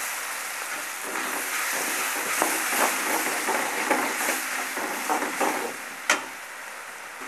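A metal spatula scrapes and stirs food in a pan.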